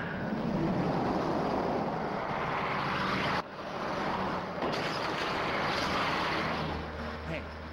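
A heavy truck engine roars loudly as it drives past.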